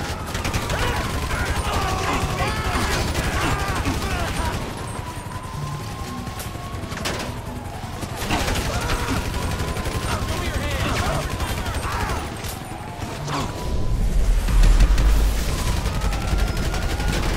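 Police sirens wail and rise and fall.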